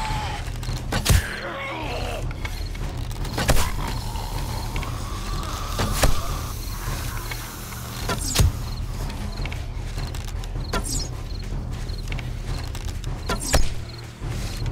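A bowstring twangs sharply as arrows are shot, several times.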